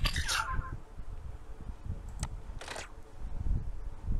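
Cartoonish game sound effects pop and thump.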